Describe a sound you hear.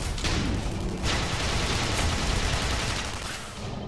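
A laser gun fires with a steady, rough buzz.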